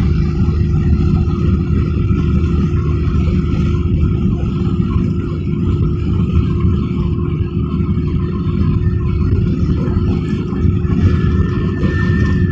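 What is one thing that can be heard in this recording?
Tyres roar steadily on the road surface.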